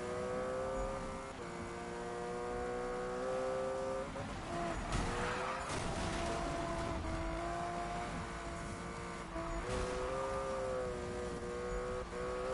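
A racing car engine roars steadily, dropping in pitch with each gear change.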